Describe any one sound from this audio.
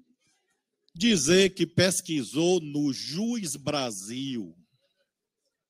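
A middle-aged man speaks with animation through a microphone.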